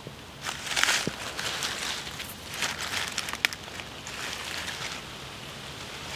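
Leaves and twigs rustle as hands brush through them.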